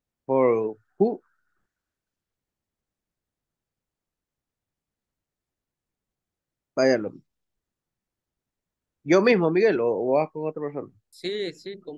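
A woman speaks calmly over an online call, in short phrases.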